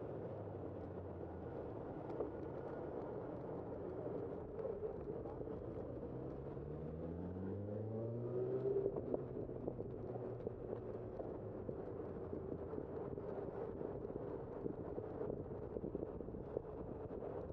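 An electric scooter's motor hums steadily as it rides.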